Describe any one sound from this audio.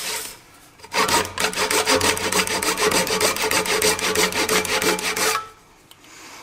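A hand saw cuts through wood with quick, rasping strokes.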